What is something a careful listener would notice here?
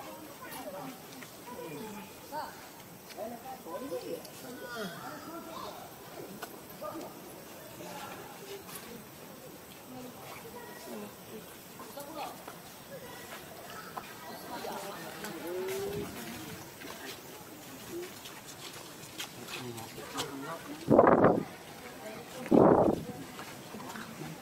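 A baby macaque squeals and cries close by.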